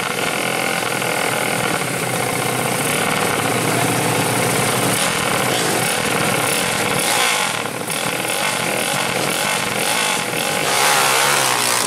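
A motorcycle engine revs loudly and repeatedly close by.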